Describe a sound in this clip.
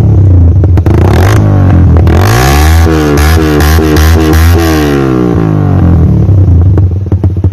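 A motorcycle engine revs loudly, its exhaust roaring up and down.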